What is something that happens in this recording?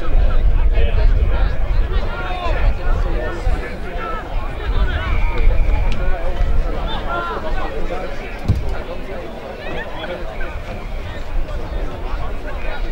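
A crowd of spectators chatters and shouts outdoors.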